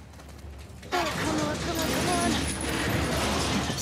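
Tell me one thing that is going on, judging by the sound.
A chain rattles as it is climbed.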